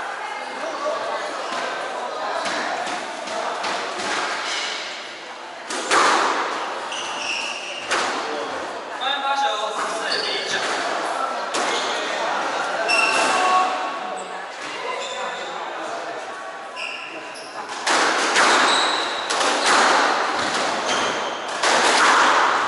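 Rackets strike a squash ball with sharp pops.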